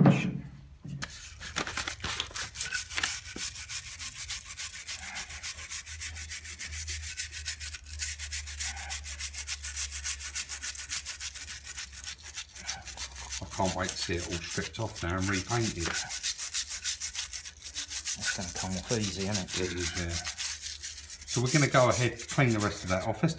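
A wire brush scrubs rapidly against metal with a harsh, fast scratching.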